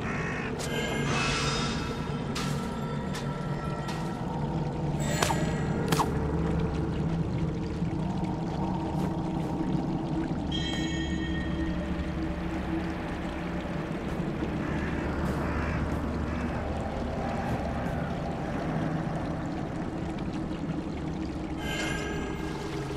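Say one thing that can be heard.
Bright magical chimes sparkle as a glowing box is conjured.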